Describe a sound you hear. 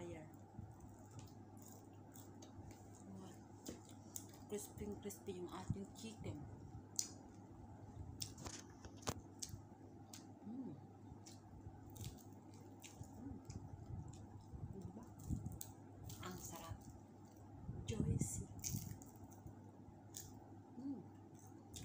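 A young woman chews and smacks her lips loudly.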